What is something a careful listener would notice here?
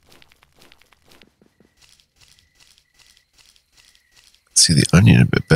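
Soft footsteps patter at a steady pace.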